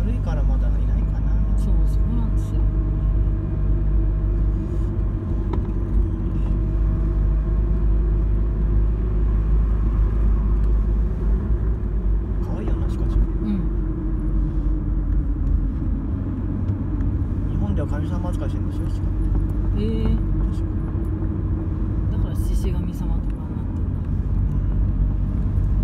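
A car's engine hums and its tyres roll on asphalt, heard from inside the car.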